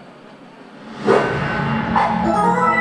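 An electric guitar plays loudly through amplifiers in a large hall.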